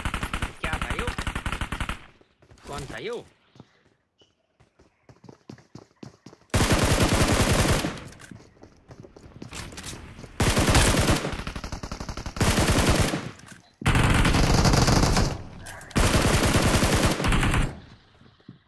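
Rapid gunfire rattles in loud, repeated bursts.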